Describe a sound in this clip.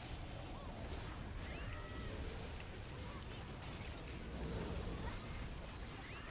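Sparkling chimes ring out as spells are cast.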